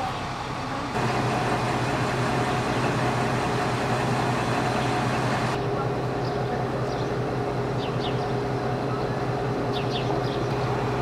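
A diesel locomotive engine idles with a steady low rumble.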